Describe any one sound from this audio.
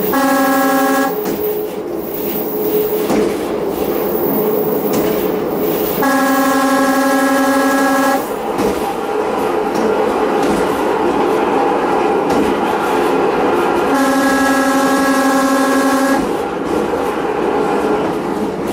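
A train rumbles and clatters steadily along the rails.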